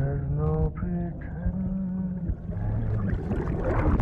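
A man speaks in a low, strained voice.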